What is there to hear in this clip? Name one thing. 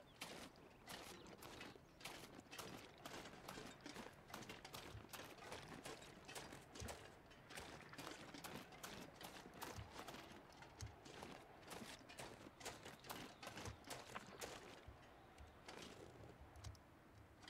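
Footsteps crunch quickly through deep snow.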